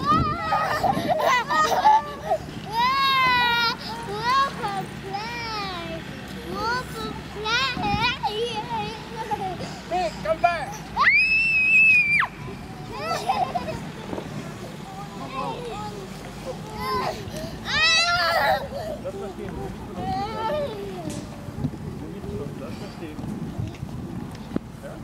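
Young children squeal and shout with excitement.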